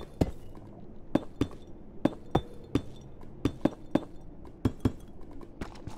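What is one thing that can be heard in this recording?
Stone blocks are set down with sharp, spaced clicks.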